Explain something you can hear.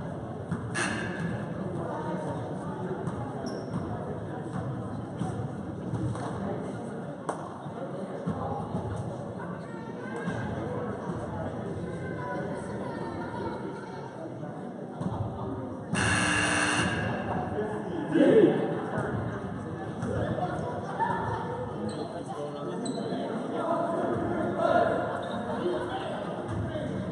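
A crowd chatters throughout a large echoing gym.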